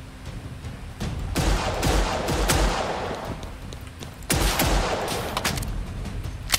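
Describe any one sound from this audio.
Pistol shots ring out sharply in a game.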